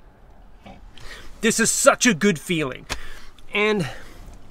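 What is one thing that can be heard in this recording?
A middle-aged man speaks with animation close by.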